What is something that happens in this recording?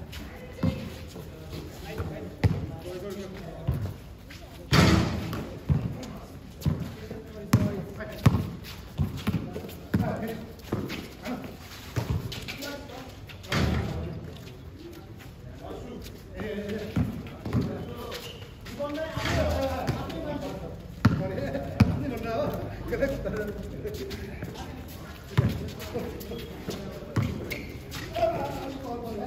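Sneakers squeak and shuffle on concrete.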